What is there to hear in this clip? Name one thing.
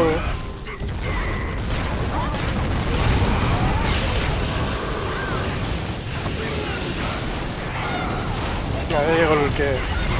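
Magic blasts and weapon strikes clash and explode in rapid bursts.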